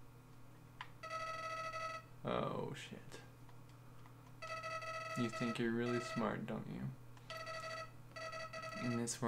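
Rapid electronic blips chirp in short bursts.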